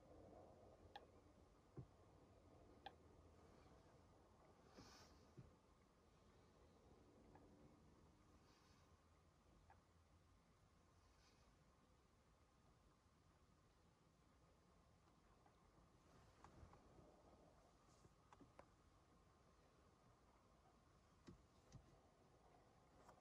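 Wind blows softly outdoors by a lake.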